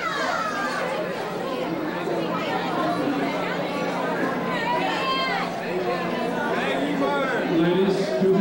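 A crowd of women chatter and call out nearby.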